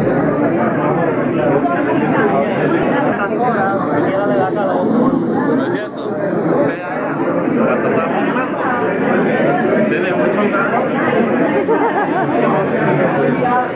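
A crowd of people chatter all around.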